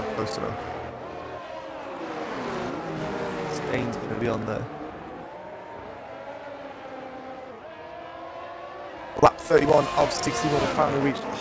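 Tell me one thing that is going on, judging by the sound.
Racing car engines scream at high pitch, rising and falling with each gear change.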